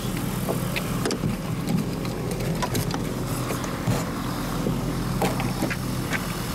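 A man climbs into a cockpit with bumps and knocks.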